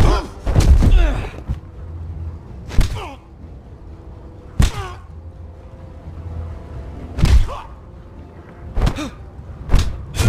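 Heavy punches thud hard against a body again and again.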